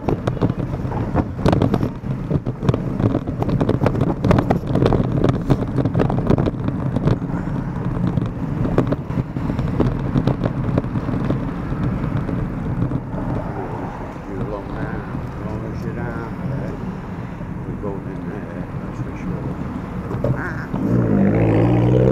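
Wind rumbles and buffets loudly against the microphone.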